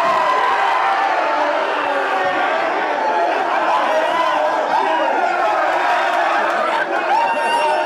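A group of young men cheer and shout loudly together.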